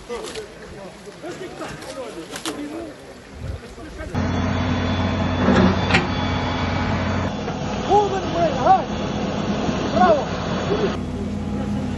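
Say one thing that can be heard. Men talk outdoors.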